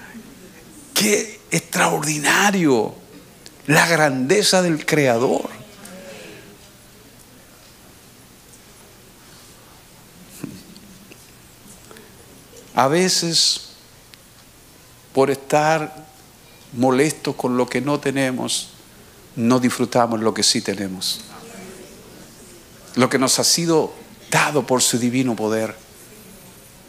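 A middle-aged man speaks slowly and calmly into a microphone, with pauses, in a reverberant hall.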